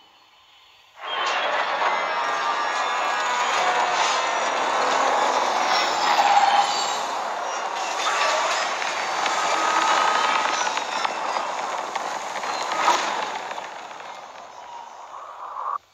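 A spaceship engine hums and roars as it flies in and lands.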